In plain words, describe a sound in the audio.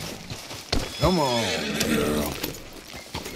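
A horse whinnies loudly.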